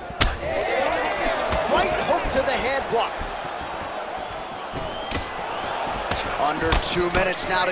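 Punches and kicks land with dull thuds.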